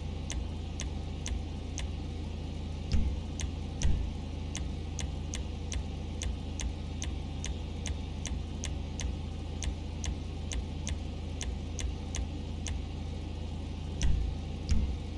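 Soft menu clicks tick in a quick, even run.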